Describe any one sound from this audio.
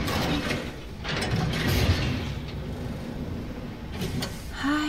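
A heavy metal door clanks and hisses open.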